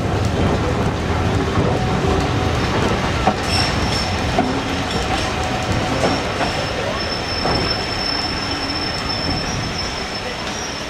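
Wind rushes past an open train window.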